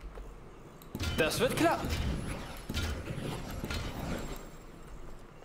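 An icy magic trap crackles and shimmers.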